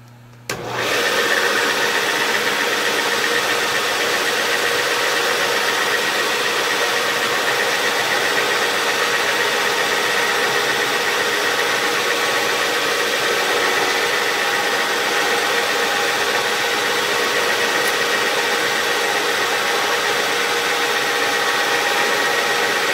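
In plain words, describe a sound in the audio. A milling machine spindle whirs steadily with a loud high whine.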